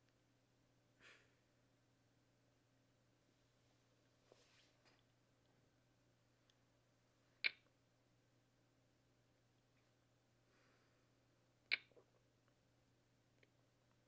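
Poker chips click as a bet is placed.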